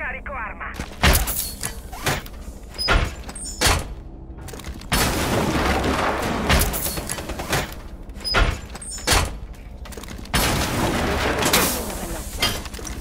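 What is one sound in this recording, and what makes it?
Heavy metal panels clang and bang loudly into place, over and over.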